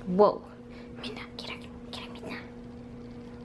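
Cats scuffle and paw at a shaggy rug.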